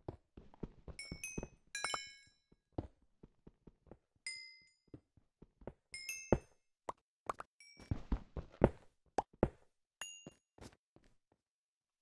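A pickaxe chips repeatedly at stone.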